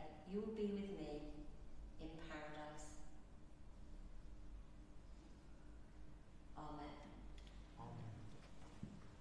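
A woman speaks calmly in a large echoing hall.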